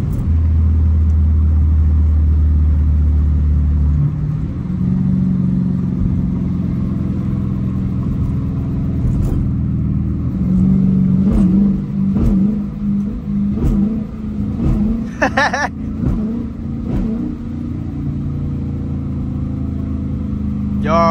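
A V8 muscle car's engine rumbles from inside the cabin as the car drives.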